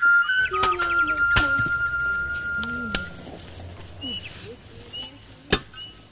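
A machete chops through grass and stalks in sharp strokes.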